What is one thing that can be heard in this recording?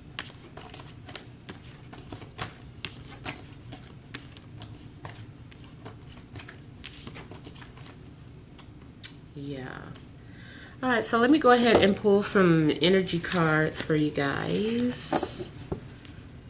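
Playing cards tap and shuffle softly on a table.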